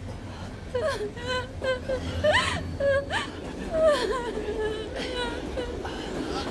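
A young woman sobs and wails in distress close by.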